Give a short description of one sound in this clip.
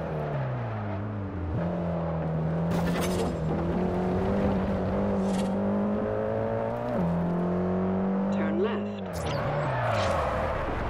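A car engine roars, climbing in pitch and dropping sharply as gears shift.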